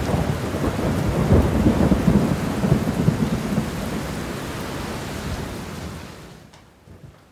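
Rain patters steadily against a window.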